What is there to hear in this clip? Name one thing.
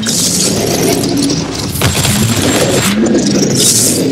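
Flamethrowers roar in bursts.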